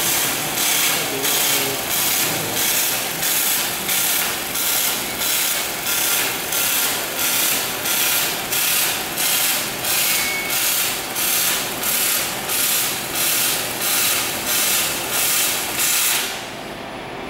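A welding arc crackles and hisses in steady rhythmic pulses.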